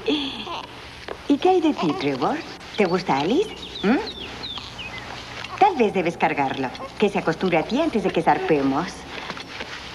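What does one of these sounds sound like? A second woman answers softly.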